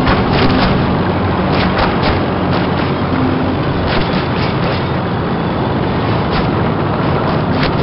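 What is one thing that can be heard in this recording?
A tank engine rumbles steadily as the tank drives over snow.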